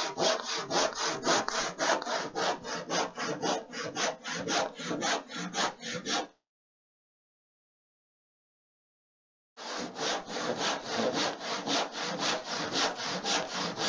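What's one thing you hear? A sanding block rubs quickly back and forth over wood in rapid, even strokes.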